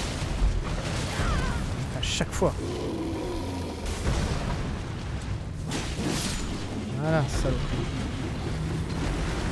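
A blade slashes and strikes with sharp hits.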